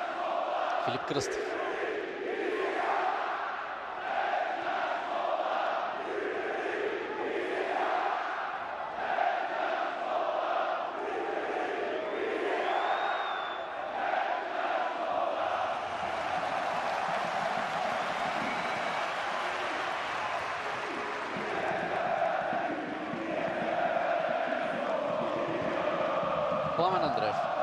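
A large stadium crowd chants and sings loudly and steadily.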